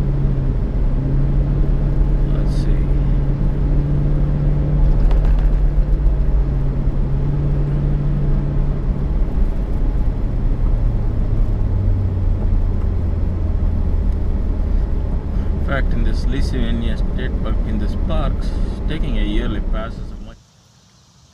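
A car engine hums steadily as tyres roll along a road.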